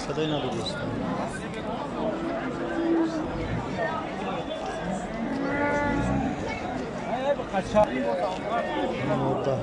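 A crowd of men talks all around, close by, outdoors.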